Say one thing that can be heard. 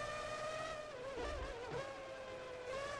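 A racing car engine drops in pitch as the car brakes and shifts down.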